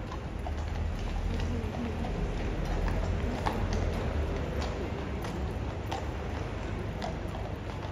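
Horse hooves clop on pavement.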